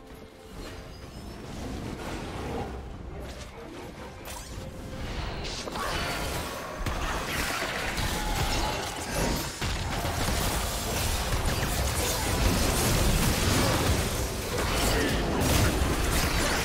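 Magic blasts and clashing effects crackle and boom in a busy fight, growing louder.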